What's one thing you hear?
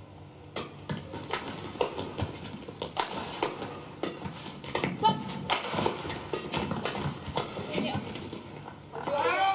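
Shuttlecocks are struck sharply by rackets in a fast rally.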